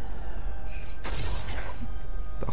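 A magic spell bursts with a whooshing blast.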